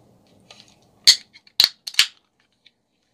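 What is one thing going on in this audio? A soda can clicks and hisses as it is opened.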